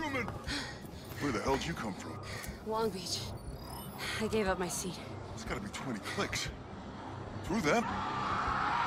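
A man asks questions in a gruff voice.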